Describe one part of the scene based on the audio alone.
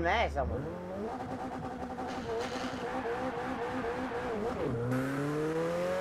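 A car engine climbs in pitch as the car speeds up.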